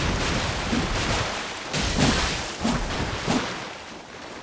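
Metal blades clash and strike.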